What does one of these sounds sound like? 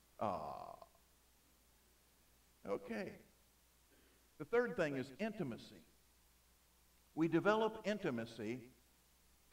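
An older man speaks with animation into a microphone, in short bursts with pauses.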